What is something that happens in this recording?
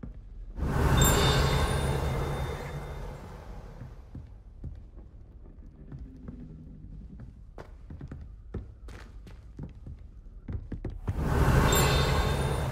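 A shower of magic sparks whooshes and crackles loudly.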